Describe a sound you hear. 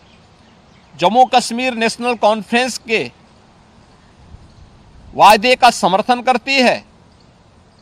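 A middle-aged man speaks calmly and firmly into a close microphone.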